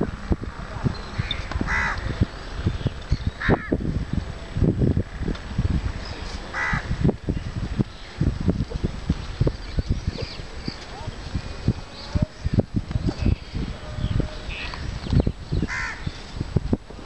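Cows tear and munch grass close by.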